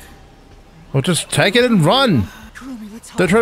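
A young woman gasps and cries out in fright.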